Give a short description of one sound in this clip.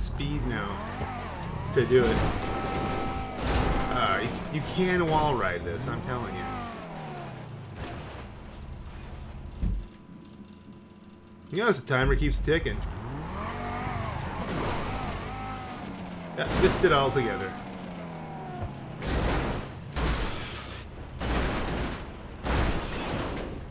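A car crashes and scrapes against rock.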